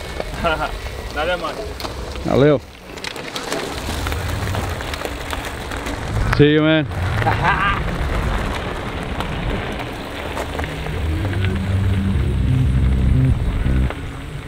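Bicycle tyres crunch over gravel.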